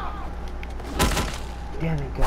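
A heavy blow thuds against a body.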